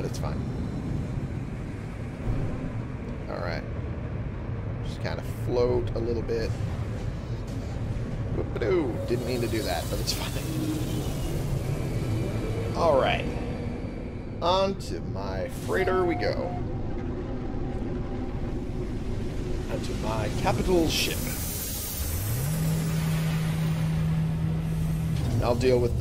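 A spacecraft engine rumbles low and steady.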